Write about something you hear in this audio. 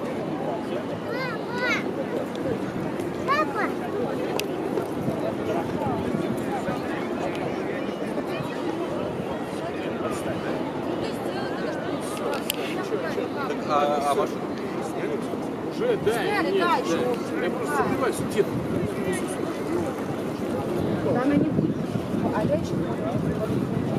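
A crowd murmurs and chatters across a wide open square outdoors.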